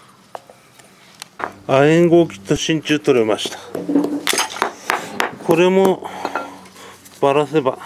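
Small metal parts click and clink as they are handled.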